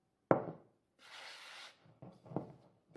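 A hand rubs flour across a wooden board with a soft swishing.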